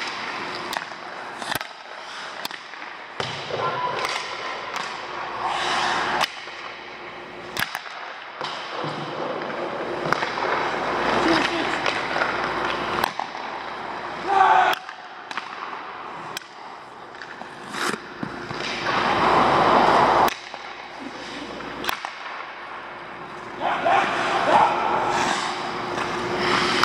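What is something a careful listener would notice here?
Skate blades scrape and carve across ice, echoing in a large hall.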